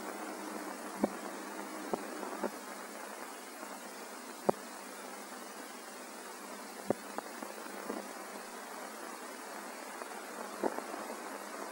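Dishes clink softly as a woman works at a sink.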